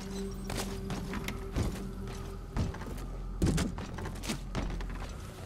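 Gear rattles and clicks.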